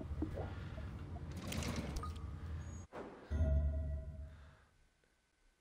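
Wooden closet doors slide and rattle open.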